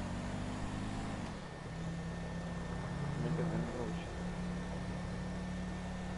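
A car engine hums steadily, dropping in pitch as it shifts gear.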